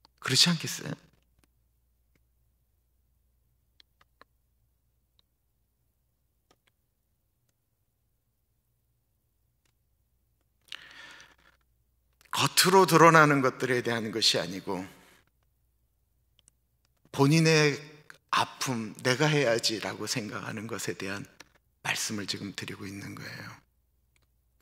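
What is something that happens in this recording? A middle-aged man speaks into a microphone with animation, in bursts with long pauses.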